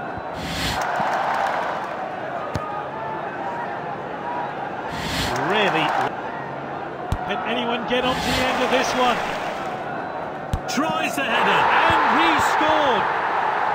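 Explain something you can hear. A stadium crowd murmurs and roars.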